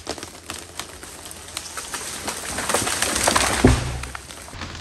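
A large tree cracks and crashes to the ground.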